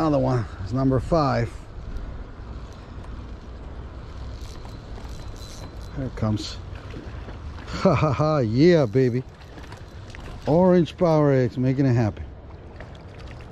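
A fishing reel clicks and whirs as its handle is turned.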